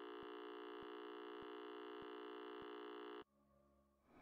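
A steady electronic test tone plays.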